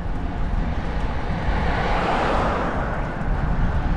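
A car approaches and passes by close.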